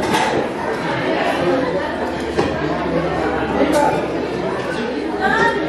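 Spoons and cutlery clink against bowls.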